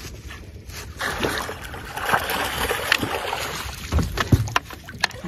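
A hooked fish splashes and thrashes in the water.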